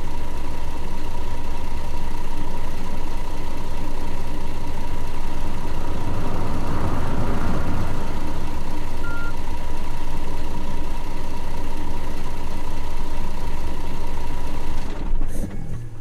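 A bus engine rumbles steadily, then cuts off.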